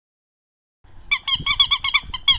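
A rubber toy squeaks rapidly as a dog chews it.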